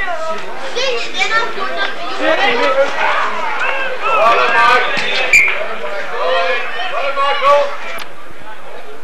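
Men playing rugby shout to each other across an open field outdoors.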